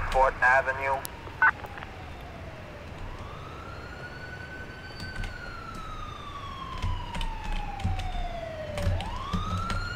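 A police siren wails close by, rising and falling slowly.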